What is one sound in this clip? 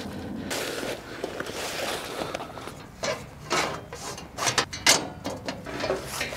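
Plastic tent pieces rustle and clatter onto the ground.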